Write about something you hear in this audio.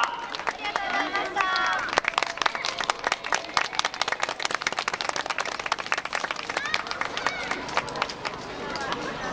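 Wooden hand clappers clack rapidly in a lively rhythm outdoors.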